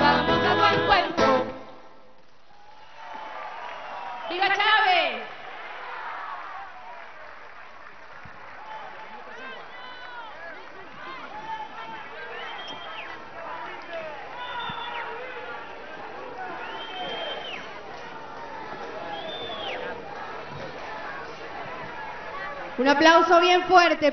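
A band plays music outdoors.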